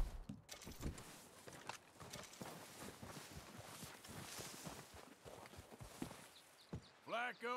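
Footsteps crunch through deep snow.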